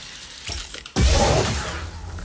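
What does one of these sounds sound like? A body lands with a heavy thud on grass.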